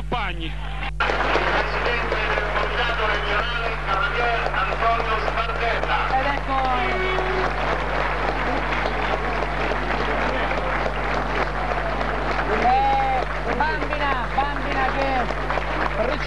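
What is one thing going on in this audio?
A large crowd cheers and chants outdoors.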